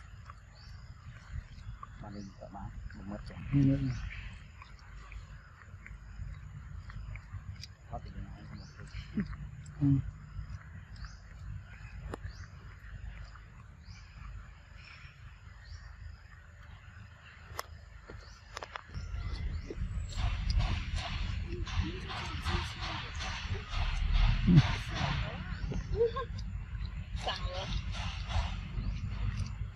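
A macaque crinkles a plastic wrapper while biting at it.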